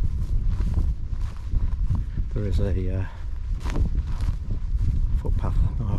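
Wind blows and buffets the microphone outdoors.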